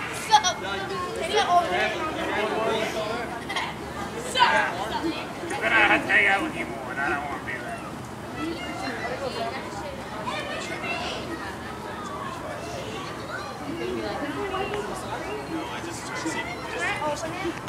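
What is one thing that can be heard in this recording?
A group of teenagers and young adults talk and shout close by, outdoors.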